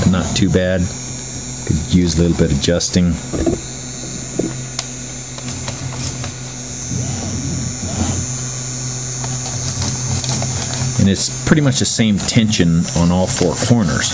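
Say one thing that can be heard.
Paper rustles and crinkles under a hand.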